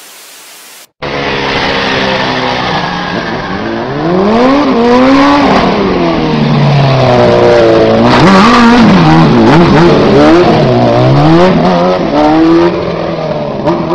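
A motorcycle engine roars and revs up and down repeatedly.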